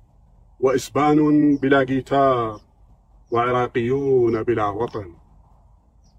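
A man speaks calmly and clearly into a close microphone, outdoors.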